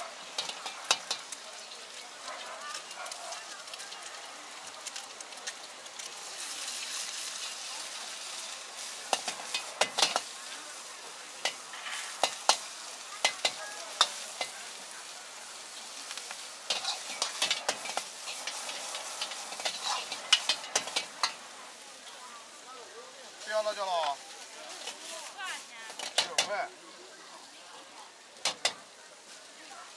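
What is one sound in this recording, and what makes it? Food sizzles while frying in oil in a hot wok.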